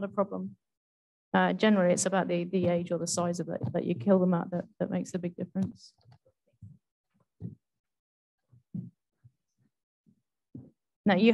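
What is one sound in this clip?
A woman speaks calmly through a microphone in an online call.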